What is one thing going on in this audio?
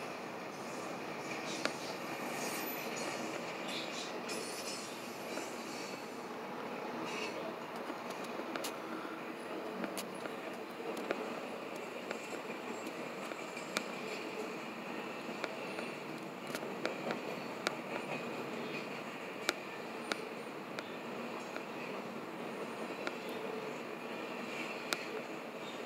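A freight train rumbles steadily past nearby.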